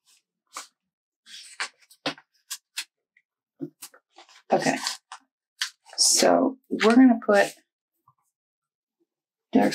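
A sheet of glossy sticker paper crinkles and rustles under fingers.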